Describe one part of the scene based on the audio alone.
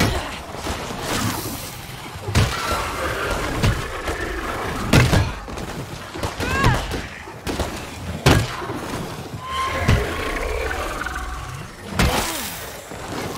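Heavy blows strike flesh in quick bursts.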